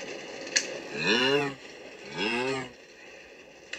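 A cow moos loudly, twice.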